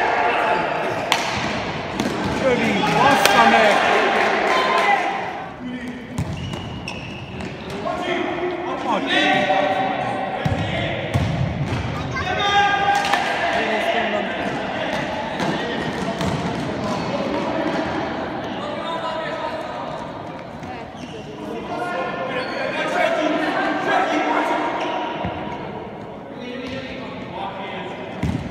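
A futsal ball is kicked, echoing in a large hall.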